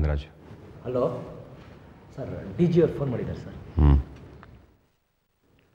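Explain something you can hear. Several men talk close by.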